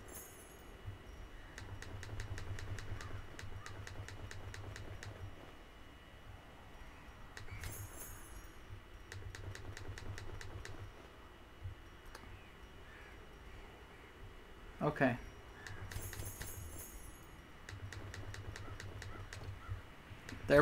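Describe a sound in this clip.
Game item sounds click softly and quickly, again and again.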